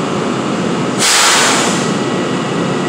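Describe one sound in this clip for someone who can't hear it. A stopped train lets out a short, loud hiss of air.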